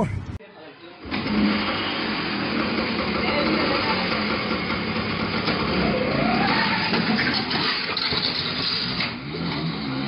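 A scooter engine runs and revs.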